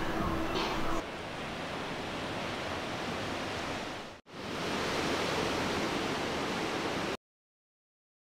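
Ocean waves break and wash steadily onto a beach.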